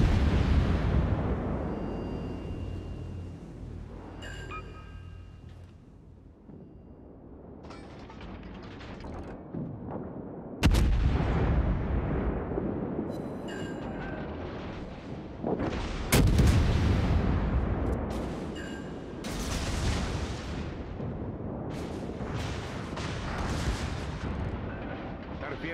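Heavy guns fire with loud, deep booms that roll away.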